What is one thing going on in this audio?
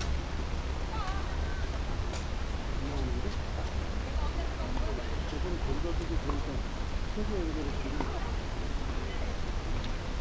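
Women call out to each other on the court.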